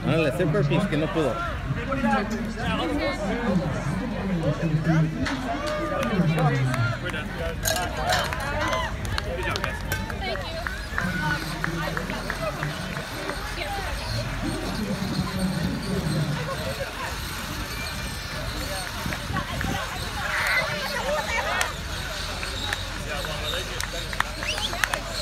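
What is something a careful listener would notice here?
A crowd of people chatter and cheer outdoors.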